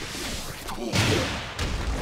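A fiery blast bursts with a whoosh.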